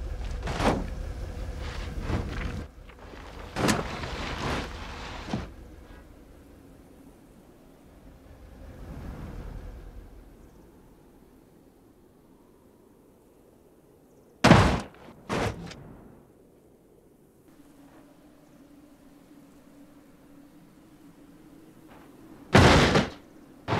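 A car crashes and tumbles down a rocky slope with loud metal bangs and crunches.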